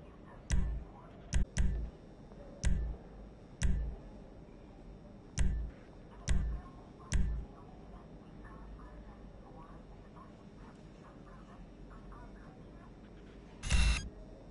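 A short game menu sound thumps each time a selection changes.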